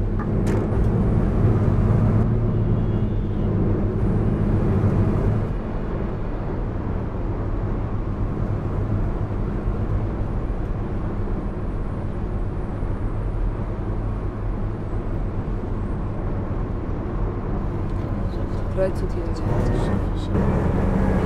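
A bus engine hums steadily with a low drone.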